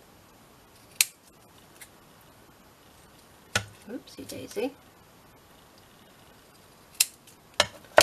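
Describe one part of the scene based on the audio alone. Scissors snip through thick card.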